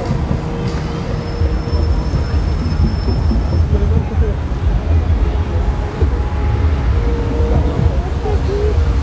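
Fountain jets splash and spray into water.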